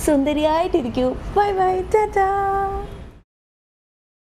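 A young woman calls out cheerfully close by.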